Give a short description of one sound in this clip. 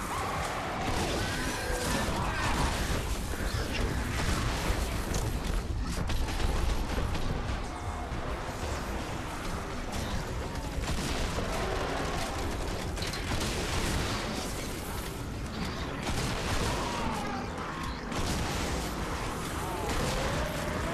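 Heavy blows thud against monsters in quick succession.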